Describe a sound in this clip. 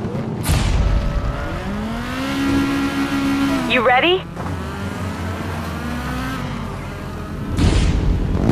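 Rally car engines roar past and rev up and down.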